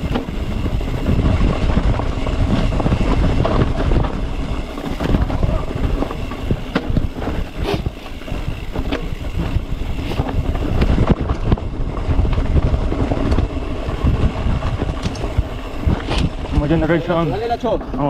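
Wind buffets a microphone.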